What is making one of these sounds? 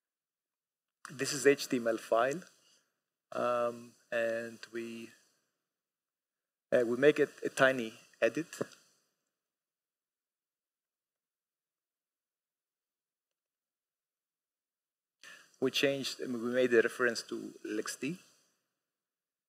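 A man speaks calmly through a microphone in a large hall, pausing between phrases.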